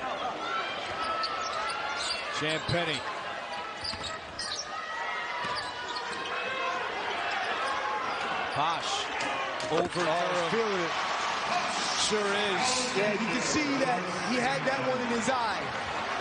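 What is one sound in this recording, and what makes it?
A large indoor crowd murmurs and cheers.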